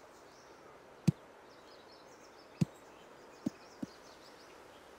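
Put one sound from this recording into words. A golf ball bounces several times on grass with soft thuds.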